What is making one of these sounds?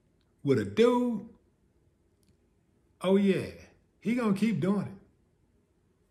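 A middle-aged man speaks calmly into a close microphone, in short bursts.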